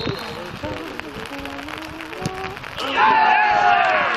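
A player kicks a football hard on an open field.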